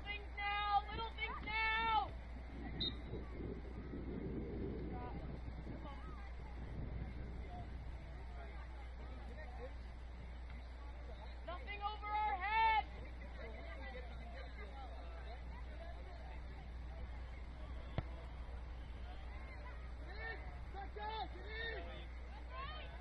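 Young women shout calls across an open field, some distance away.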